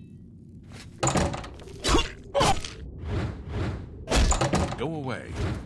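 A blade swings and strikes with sharp, heavy blows.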